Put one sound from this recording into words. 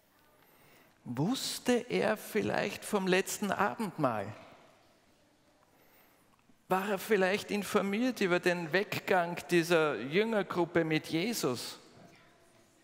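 A middle-aged man speaks with emphasis into a headset microphone in a room that echoes.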